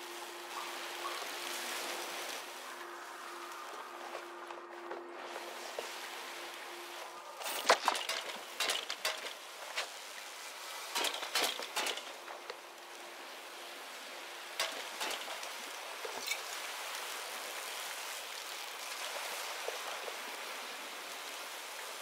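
Electricity crackles and buzzes close by.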